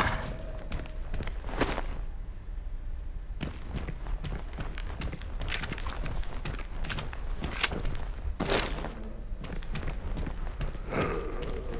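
Footsteps scuff across a hard floor.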